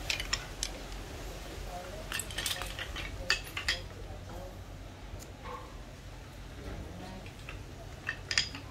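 Metal hand tools clink and clatter as they are picked up and set down.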